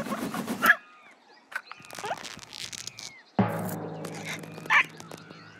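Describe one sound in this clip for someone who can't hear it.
A cartoon parrot squawks shrilly.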